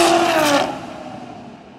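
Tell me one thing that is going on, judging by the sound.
A race car roars past at high speed and fades away.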